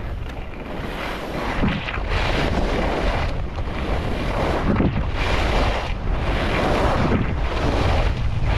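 Skis scrape and hiss over hard snow in rhythmic turns.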